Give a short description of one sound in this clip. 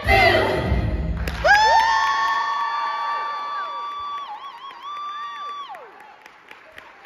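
A group of young performers sings a loud, long held note that ends in a glide.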